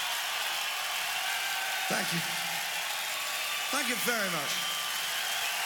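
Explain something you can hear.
A crowd cheers and applauds loudly in a large hall.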